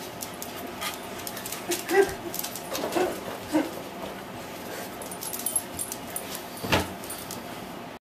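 A dog's claws click on a hard floor.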